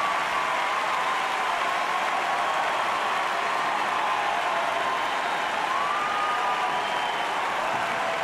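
Spectators whistle shrilly.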